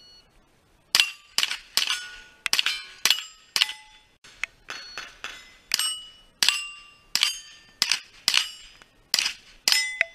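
Bullets ring against steel targets.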